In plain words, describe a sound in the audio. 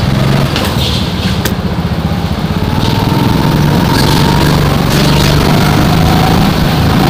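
A small petrol go-kart engine drones under throttle close by.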